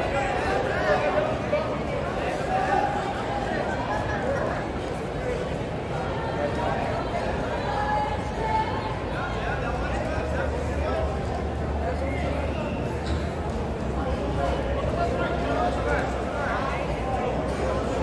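Spectators shout and call out encouragement.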